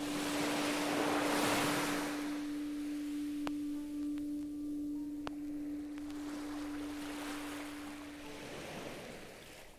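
Electronic ambient music plays, with a steady low drone and swelling washes of sound.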